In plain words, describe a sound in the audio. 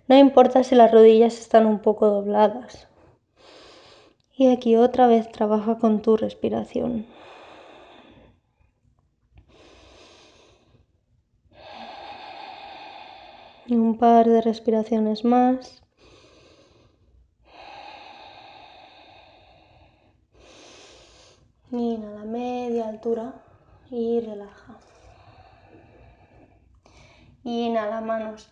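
A woman speaks calmly and softly, close by, with pauses.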